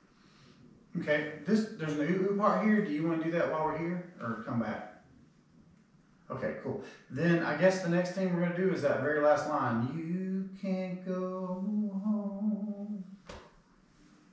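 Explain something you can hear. A man sings into a close microphone.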